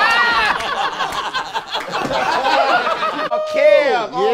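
A group of young men laugh loudly and whoop.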